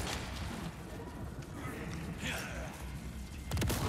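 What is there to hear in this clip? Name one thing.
A man shouts a sharp warning.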